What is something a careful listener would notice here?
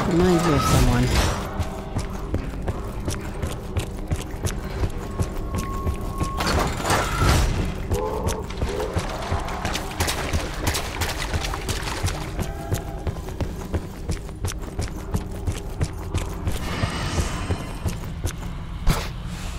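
Footsteps thud steadily on stone.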